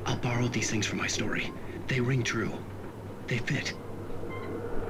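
A man speaks calmly through a small television loudspeaker.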